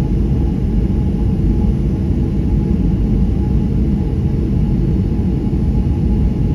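A jet engine rumbles low and steadily, heard from inside an aircraft cabin as it rolls along the runway.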